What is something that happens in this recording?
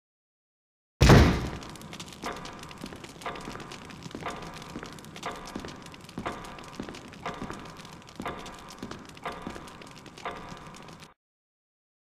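Footsteps thud steadily across a hard floor in a large echoing hall.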